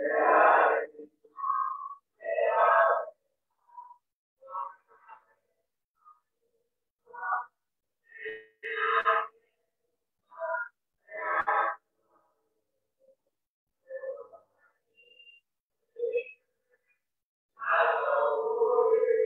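Men chant prayers aloud in short phrases, heard through an online call.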